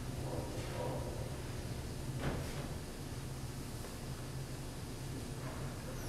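A man's footsteps pad softly down an aisle.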